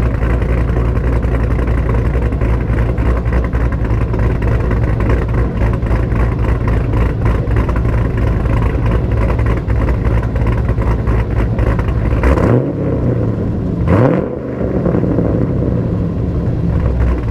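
A sports car's engine idles with a deep, rumbling burble close by.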